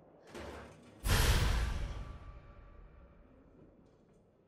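A deep whoosh swells and slowly fades.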